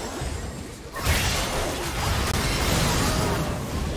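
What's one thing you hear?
Game spell effects burst and crackle loudly during a fight.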